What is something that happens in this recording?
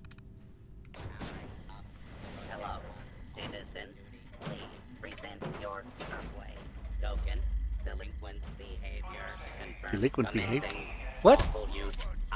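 A metal robot clanks and whirs as it moves.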